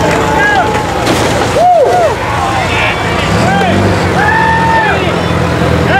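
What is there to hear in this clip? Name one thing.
A truck engine rumbles loudly.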